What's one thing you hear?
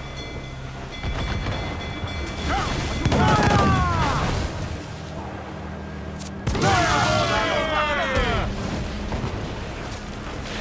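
Ship's cannons fire a booming broadside.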